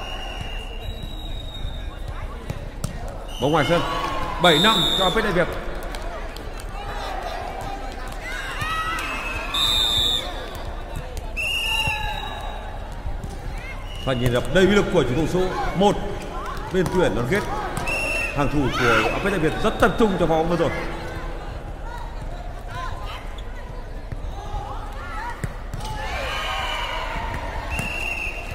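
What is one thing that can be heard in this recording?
Shoes squeak on a hard court.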